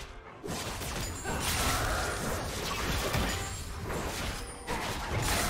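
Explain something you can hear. Game spells and sword hits crackle and clash in a busy fight.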